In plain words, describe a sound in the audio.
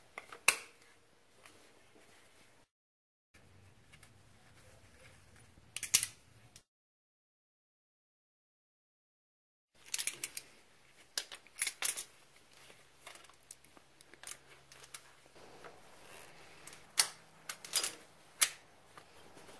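Metal tools clink and click against engine parts.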